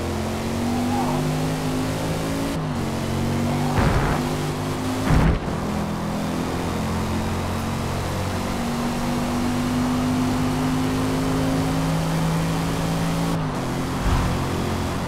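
A car engine roars steadily, shifting up through the gears as it speeds up.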